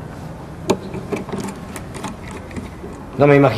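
A key scrapes and clicks in a lock.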